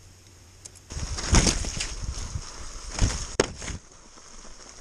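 Bicycle tyres rattle and crunch over dry leaves.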